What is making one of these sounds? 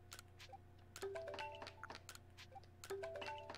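Short game tones play a quick melody.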